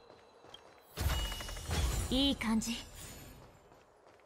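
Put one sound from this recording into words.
A bright chime rings out.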